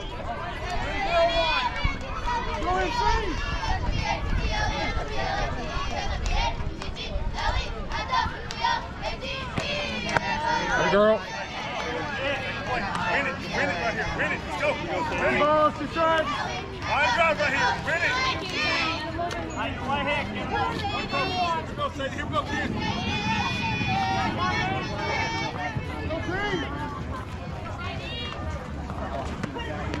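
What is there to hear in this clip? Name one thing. Girls and young women shout and cheer excitedly from nearby.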